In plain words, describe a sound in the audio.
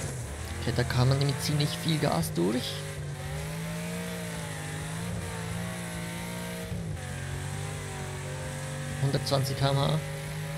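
A car engine roars steadily, rising and falling with speed.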